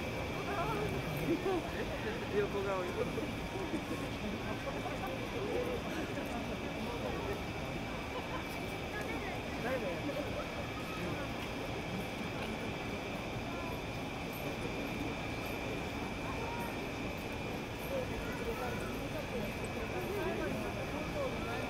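A crowd of people murmurs and chatters nearby outdoors.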